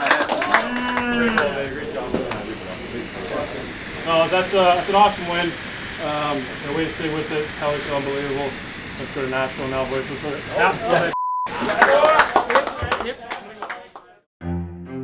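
Young men talk with animation nearby.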